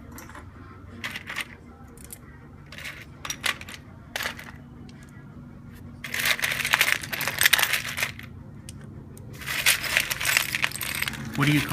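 Loose glass mosaic pieces clink and rattle in a tray as a hand sorts through them.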